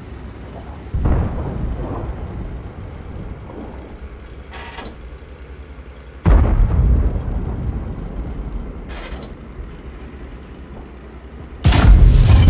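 A tank cannon fires with a heavy boom that echoes away.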